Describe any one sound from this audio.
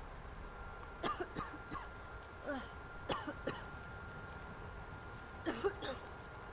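A young woman speaks softly into a microphone.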